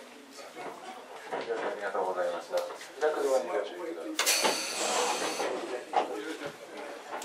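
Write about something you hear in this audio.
A cable car hums and rattles as it climbs.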